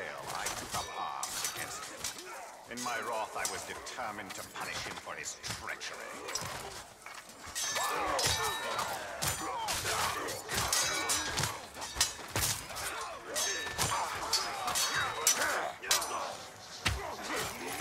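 Blades clash and strike in rapid combat.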